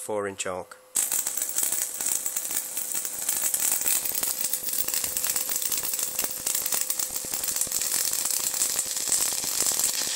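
An electric arc hisses and buzzes steadily.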